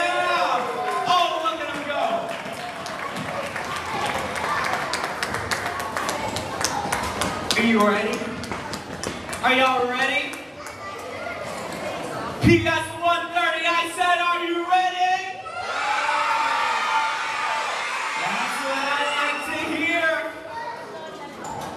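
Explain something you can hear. Children sing together on a stage in a large echoing hall.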